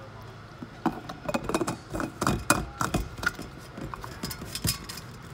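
A plastic lid clicks as it is screwed onto a metal bottle.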